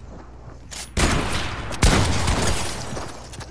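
A wall smashes and shatters apart.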